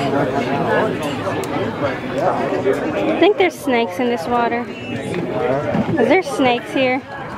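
People chatter and talk nearby outdoors.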